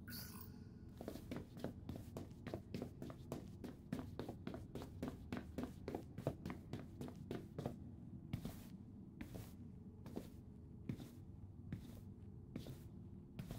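Quick footsteps thud across a hard floor in an echoing hall.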